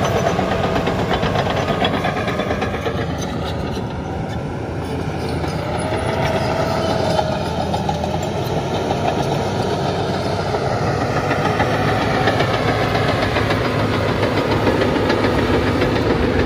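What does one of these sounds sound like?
A bulldozer engine rumbles steadily nearby.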